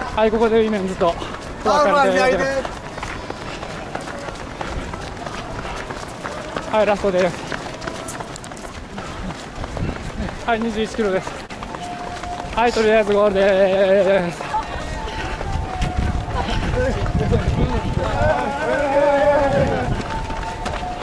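Spectators along the road shout and cheer in bursts.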